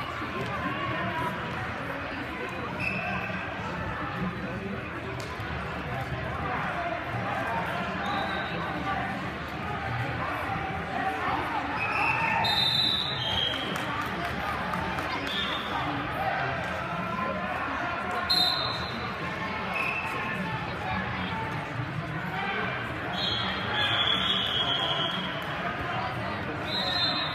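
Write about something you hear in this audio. A crowd of spectators chatters and shouts throughout a large echoing hall.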